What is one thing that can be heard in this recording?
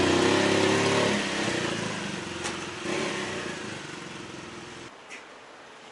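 A motorcycle engine rumbles nearby, then cuts out.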